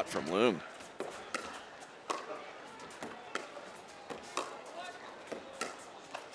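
Paddles pop sharply against a plastic ball in a quick rally, in a large echoing hall.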